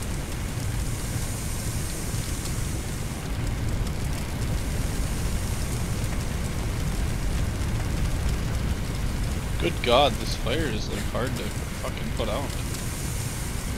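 Water sprays hard from a fire hose.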